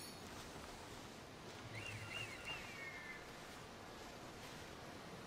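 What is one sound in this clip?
Footsteps rustle through tall grass at a run.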